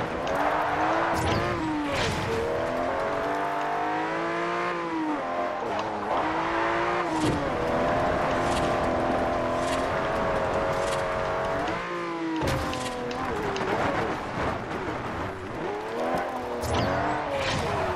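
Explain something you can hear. A car engine revs high, rising and falling as gears shift.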